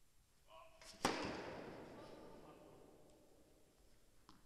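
A tennis racket strikes a ball hard, ringing out in a large echoing hall.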